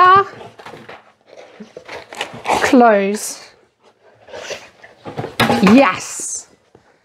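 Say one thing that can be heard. A dog's paws patter on the floor.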